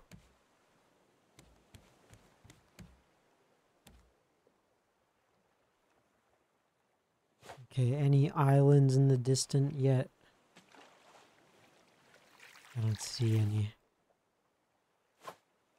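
Gentle sea waves lap and wash.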